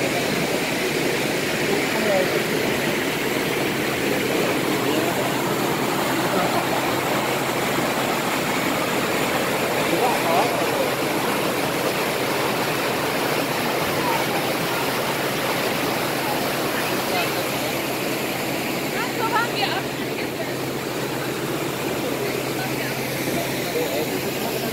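A crowd of passengers chatters nearby.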